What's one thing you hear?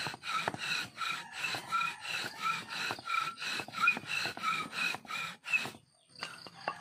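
A wooden drill thumps rhythmically against a board.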